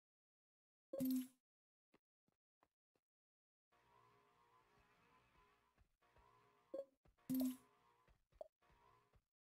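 Soft menu clicks and chimes sound a few times.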